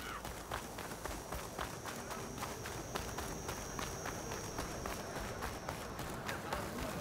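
Footsteps run quickly over sandy ground.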